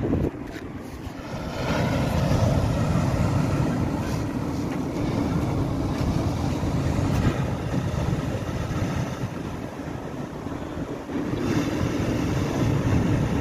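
Waves break and wash onto a beach, surging and easing.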